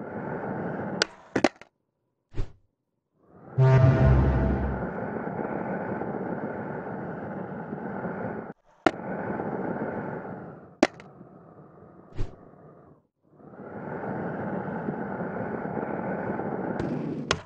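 A skateboard clacks sharply against the ground.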